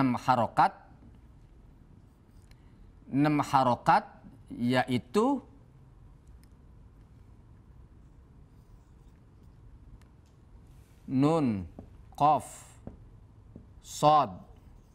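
A man speaks calmly and clearly in short phrases, close to a microphone.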